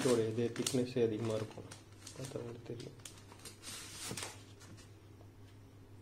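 Paper sheets rustle as they are leafed through.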